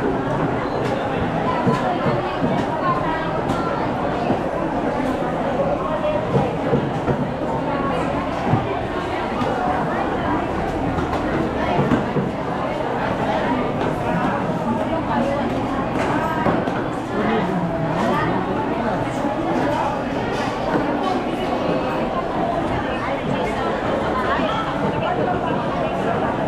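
A dense crowd of men and women chatter all around in a busy echoing hall.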